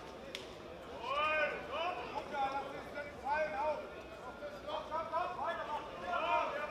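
A crowd of men shouts and cheers loudly in a large hall.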